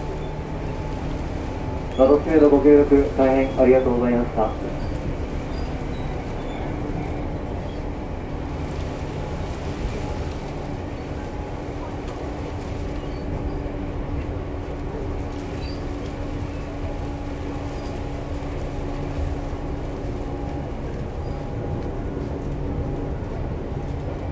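A train's electric motor hums steadily, with a low rumble.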